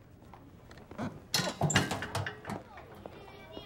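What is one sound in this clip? Paper rustles as it drops into a rubbish bin.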